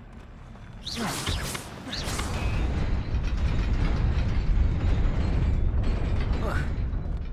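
A young man talks through a headset microphone.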